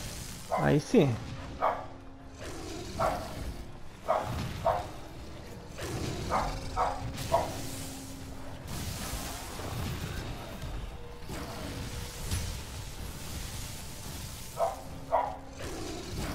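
A blade slashes repeatedly with sharp hits.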